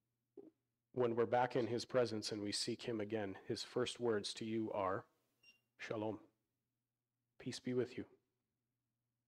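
A man speaks calmly through a microphone, pausing now and then.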